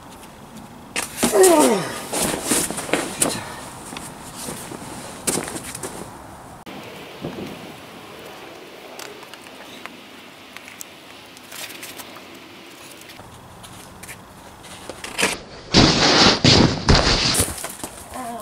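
A body drops and lands with a heavy thud on a padded mat.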